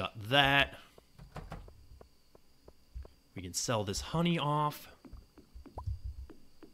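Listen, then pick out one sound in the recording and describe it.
Light footsteps tap across a wooden floor.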